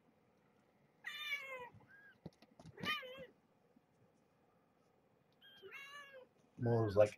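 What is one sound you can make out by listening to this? Small kittens mew in high, thin voices.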